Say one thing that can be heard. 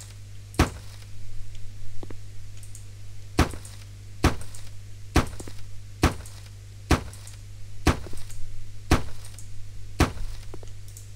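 A hammer knocks sharply, again and again at a steady pace.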